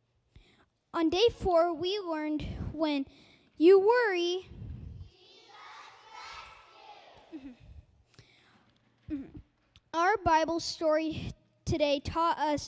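A young boy speaks clearly into a microphone.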